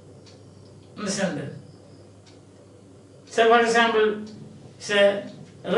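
An elderly man speaks calmly and clearly, close by, with pauses between phrases.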